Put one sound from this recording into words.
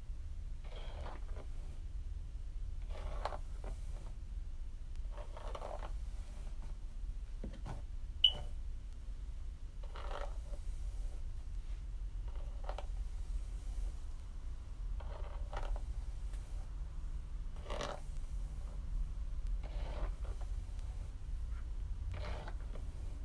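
A brush swishes through long hair in repeated strokes.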